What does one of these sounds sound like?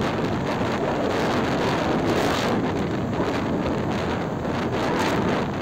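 A motorcycle engine hums while cruising on a paved road.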